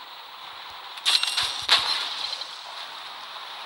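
An explosion bursts with crackling debris.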